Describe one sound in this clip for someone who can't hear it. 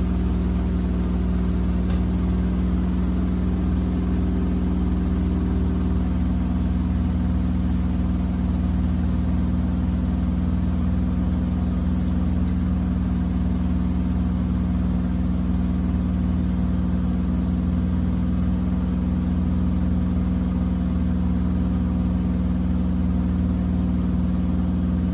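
A washing machine hums steadily with a low motor drone.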